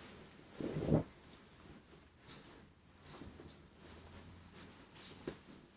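Fabric rustles softly.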